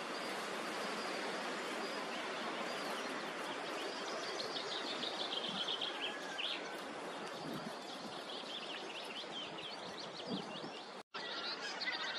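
Wind rustles through dry reeds.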